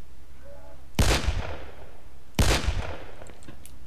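Gunshots boom loudly in a narrow echoing tunnel.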